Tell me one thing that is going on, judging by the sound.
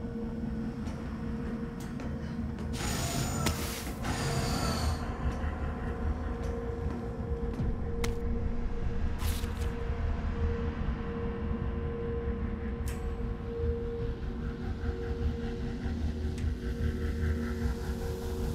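Machinery hums low and steadily.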